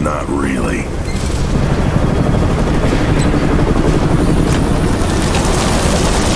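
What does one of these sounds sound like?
A helicopter's rotors thump and roar nearby.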